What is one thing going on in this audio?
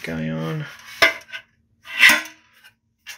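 A thin metal box clanks against a hard surface.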